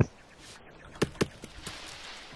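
An axe chops into a tree trunk with sharp knocks.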